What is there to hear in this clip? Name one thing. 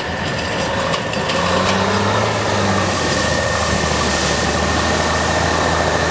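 A truck splashes loudly through deep water.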